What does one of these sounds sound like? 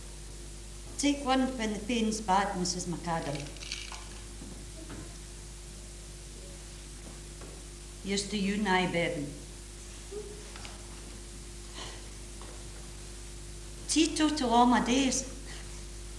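An elderly woman speaks slowly and calmly, heard from a distance.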